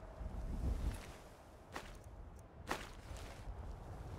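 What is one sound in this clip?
Coins clink.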